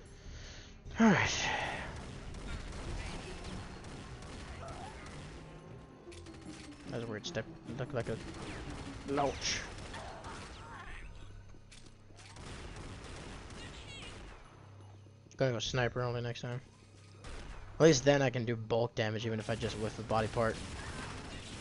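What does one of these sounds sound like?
Gunshots and blasts ring out in a video game.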